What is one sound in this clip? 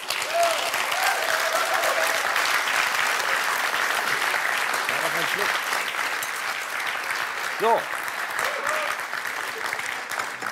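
A large audience applauds and laughs in a large hall.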